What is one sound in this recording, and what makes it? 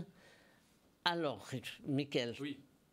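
A younger man speaks through a microphone.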